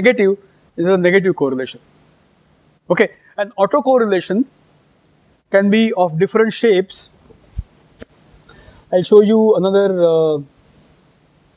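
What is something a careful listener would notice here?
A middle-aged man speaks calmly through a microphone, lecturing.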